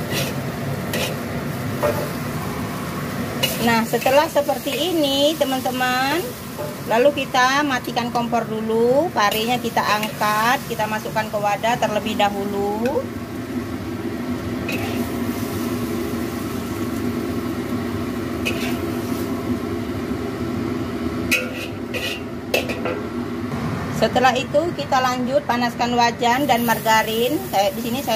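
Food sizzles and hisses in a hot wok.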